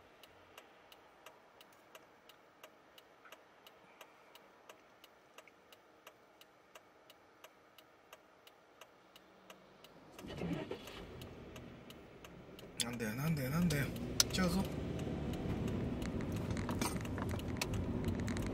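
A car's turn signal ticks steadily.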